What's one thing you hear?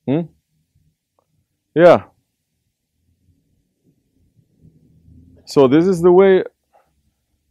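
A man speaks slowly and calmly into a close microphone, with long pauses.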